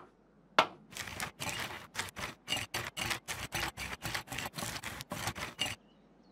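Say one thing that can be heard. A paint roller swishes and squelches across a board in quick strokes.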